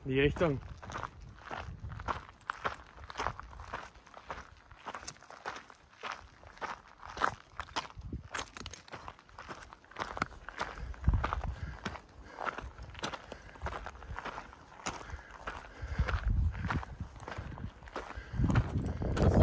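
Hiking boots crunch on loose rock and gravel.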